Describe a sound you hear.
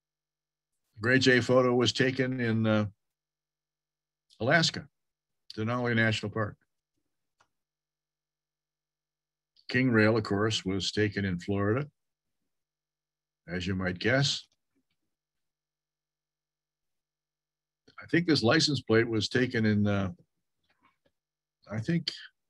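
An elderly man speaks calmly in short phrases over an online call.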